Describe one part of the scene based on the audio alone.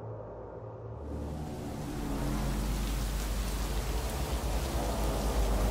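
Heavy rain pours down and splashes on the ground.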